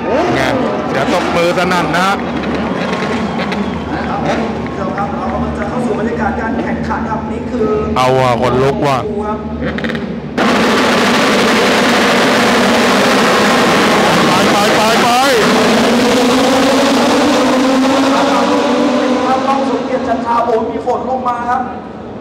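Racing motorcycle engines roar and whine as they pass close by.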